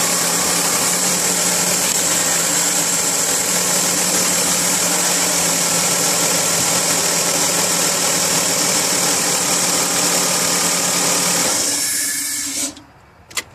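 A car engine idles close by with a steady whirring hum.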